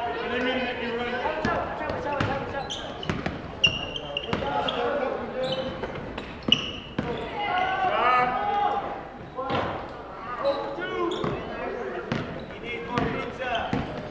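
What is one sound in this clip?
A basketball bounces repeatedly on a wooden floor.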